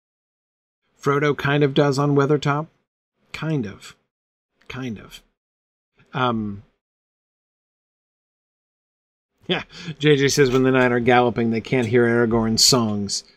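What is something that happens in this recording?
A man talks close to a microphone, calmly reading out in pauses.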